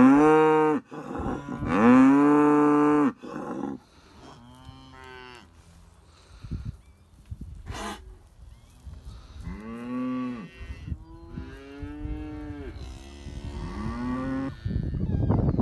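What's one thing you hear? Cattle moo loudly and repeatedly nearby.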